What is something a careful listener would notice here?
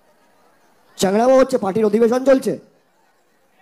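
A young man sings loudly into a microphone.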